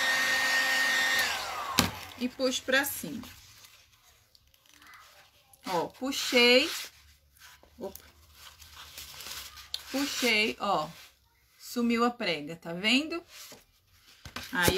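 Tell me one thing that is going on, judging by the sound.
Paper tissue rustles and crinkles as it is folded.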